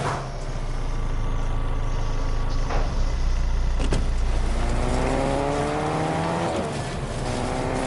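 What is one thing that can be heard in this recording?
A car engine hums low and steady, then revs up as the car speeds off.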